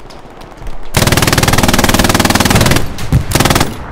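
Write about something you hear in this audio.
A heavy machine gun fires rapid bursts close by.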